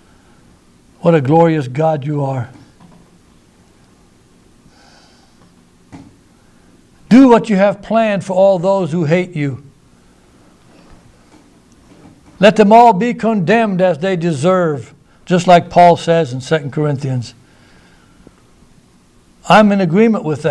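A middle-aged man speaks with emphasis into a microphone, in bursts with pauses.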